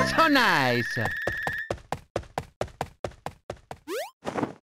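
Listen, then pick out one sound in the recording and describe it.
Quick electronic beeps tick in a steady run as points are counted.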